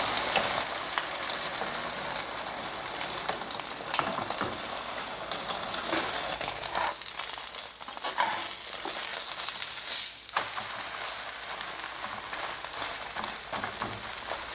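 A metal spatula scrapes against a frying pan.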